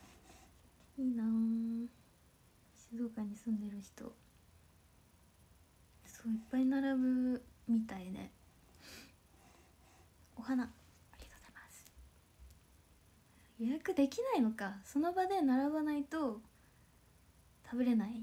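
A young woman speaks softly and playfully close to a microphone.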